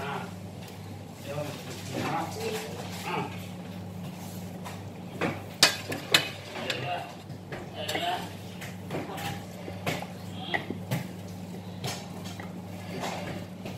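A ladle scrapes and clinks against a metal pot.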